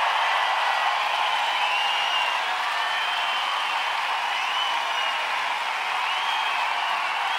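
People in a crowd whistle loudly.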